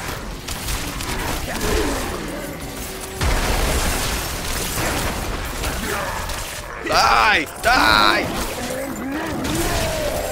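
Magic spells crackle and burst in a fight.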